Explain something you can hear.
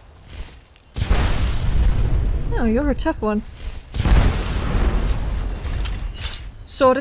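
A magic spell crackles and roars.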